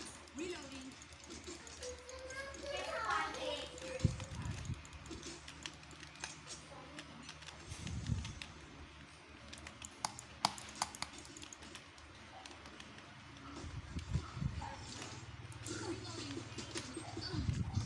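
Short clicks and swooshing effects from a computer game play through speakers.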